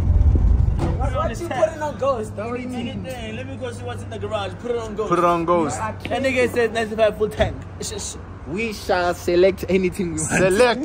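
Young men talk with animation close by.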